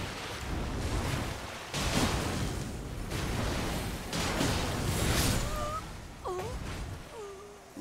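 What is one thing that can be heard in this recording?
Water splashes under running feet.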